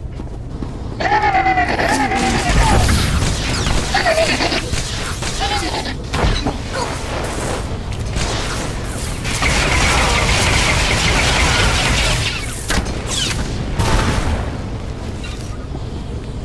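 Energy weapons blast and crackle in a fight.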